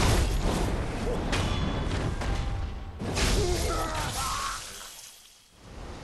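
Sword blows whoosh and clash in a video game fight.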